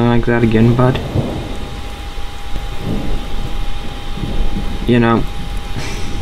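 A young man speaks briefly into a headset microphone, close up.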